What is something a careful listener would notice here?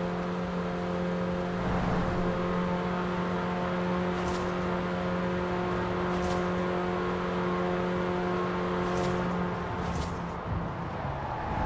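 A car engine drones steadily at high speed.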